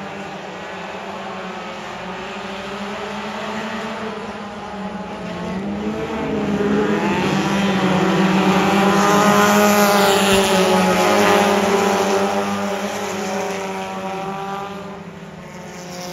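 Race car engines roar steadily around a dirt track.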